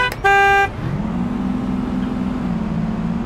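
A bus engine hums and revs up as the bus pulls away.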